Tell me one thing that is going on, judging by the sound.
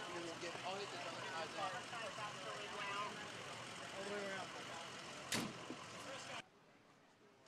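Men talk outdoors among a murmuring crowd.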